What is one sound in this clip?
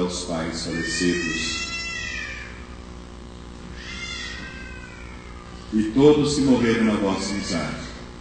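A man speaks slowly into a microphone over loudspeakers, echoing in a large hall.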